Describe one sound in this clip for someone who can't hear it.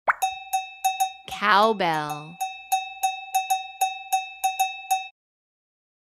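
A cowbell is struck again and again in a quick, even rhythm.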